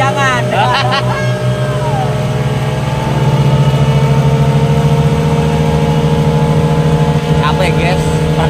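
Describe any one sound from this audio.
A young man laughs and speaks cheerfully close by.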